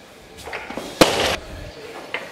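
A heavy barbell crashes down onto the floor.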